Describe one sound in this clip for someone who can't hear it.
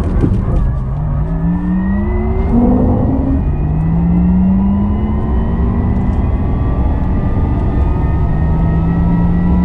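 An electric motor whines, rising in pitch as the car speeds up.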